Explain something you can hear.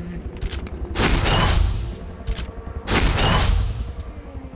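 A game menu plays short bursts of sound as selections are confirmed.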